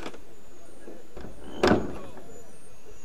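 A wooden chest lid creaks open and thumps.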